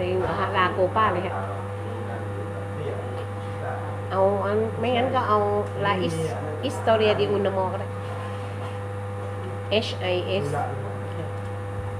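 A woman sings into a microphone, heard through a loudspeaker.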